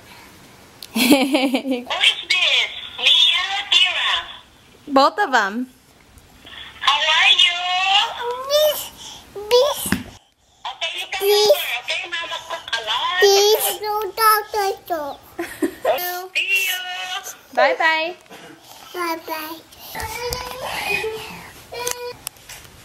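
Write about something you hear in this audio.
A woman speaks warmly and playfully close by.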